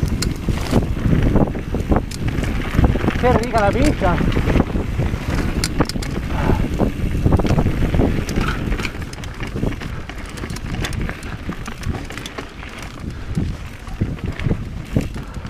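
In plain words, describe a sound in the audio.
Bicycle tyres crunch and roll over a rough dirt trail.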